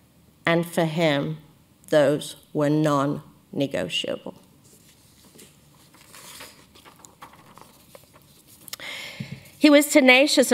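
A woman speaks calmly into a microphone in a large hall.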